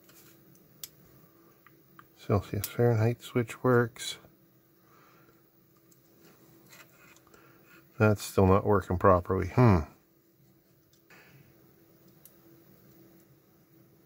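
Small plastic parts click and tap as a device is taken apart by hand.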